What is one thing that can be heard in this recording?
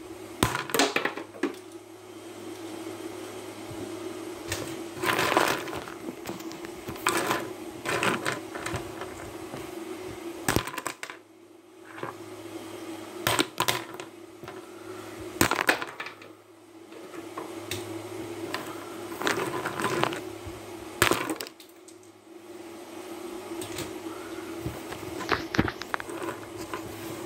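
Knocks and taps sound on a wooden table.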